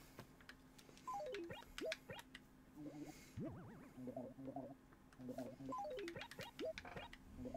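Short chiming tones step quickly downward.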